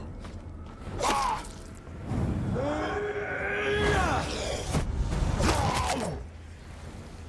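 Heavy blows land in a scuffle.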